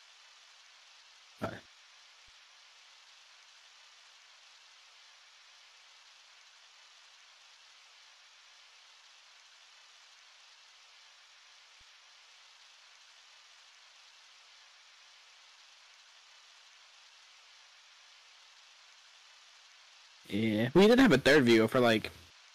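Rain falls with a steady soft hiss.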